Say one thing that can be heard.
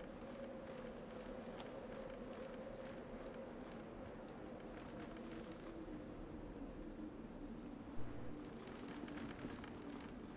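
Footsteps patter softly on hard ground.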